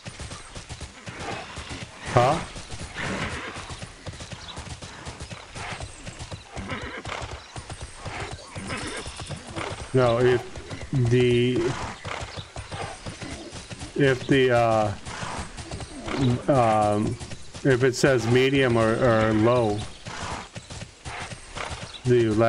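A man talks casually and close into a microphone.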